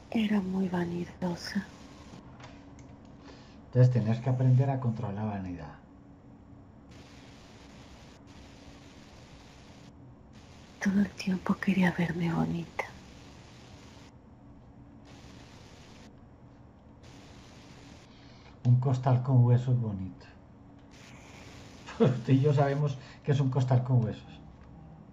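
A middle-aged man speaks calmly in short bursts over an online call.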